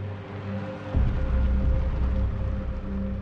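A car drives up along a street.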